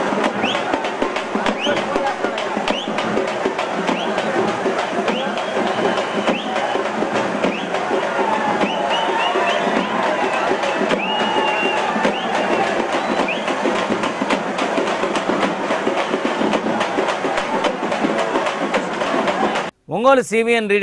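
A huge crowd roars and shouts outdoors.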